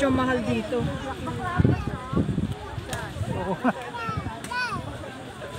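Men and women chat casually nearby outdoors.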